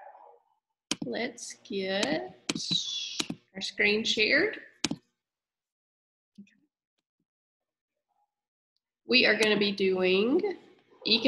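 A young woman speaks calmly into a microphone on an online call.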